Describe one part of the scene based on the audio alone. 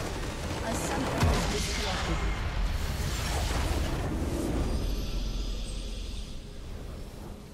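A loud magical blast crackles and rumbles, then slowly fades.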